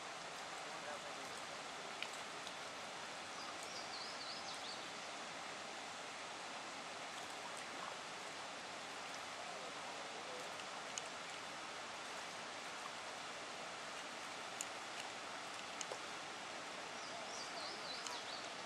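Rushing water roars steadily nearby.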